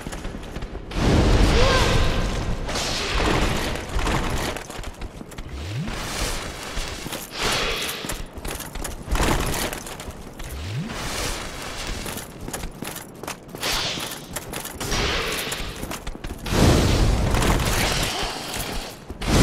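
Metal weapons clash and strike armour.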